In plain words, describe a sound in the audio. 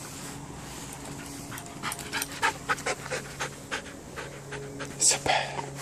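A dog runs up close over a dirt path, its paws scuffing.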